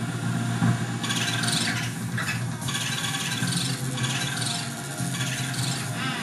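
A small vacuum whirs and sucks with a rushing hiss.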